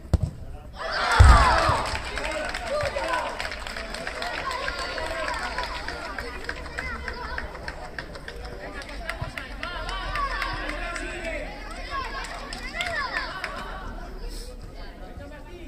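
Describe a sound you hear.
Spectators cheer and shout loudly after a goal.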